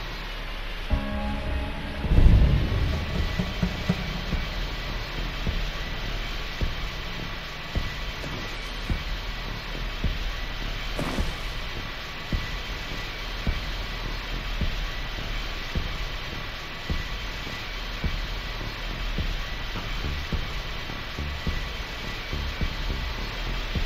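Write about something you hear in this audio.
Tyres rumble and bump over rocky ground.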